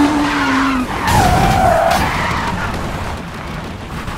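A car crashes and scrapes against a barrier.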